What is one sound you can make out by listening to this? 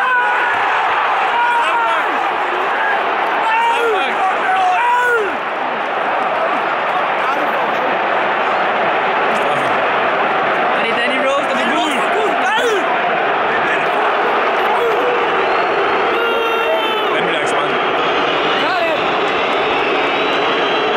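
A large stadium crowd roars and chants steadily all around.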